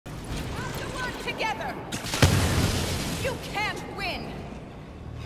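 Laser blasters fire with sharp, zapping bursts.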